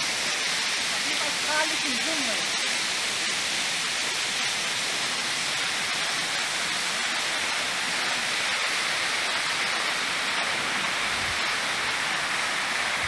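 A stream of water rushes steadily nearby.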